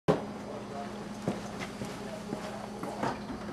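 Footsteps thud on a hard floor nearby.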